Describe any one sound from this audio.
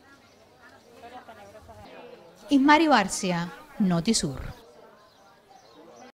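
Men and women chatter quietly in the background outdoors.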